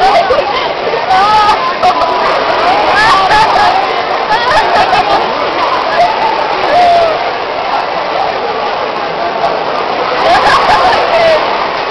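A large crowd chatters, with voices echoing in a big hall.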